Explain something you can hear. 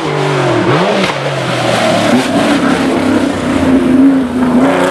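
A Porsche 911 flat-six engine howls at full throttle as it approaches.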